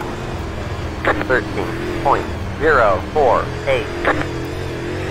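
A man speaks briefly with animation, close to a microphone.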